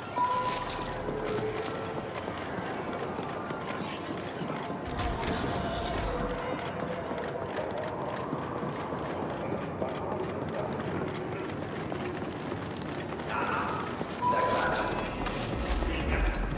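Footsteps tread steadily on hard metal and stone.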